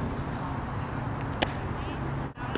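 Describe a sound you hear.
A softball smacks into a leather glove nearby outdoors.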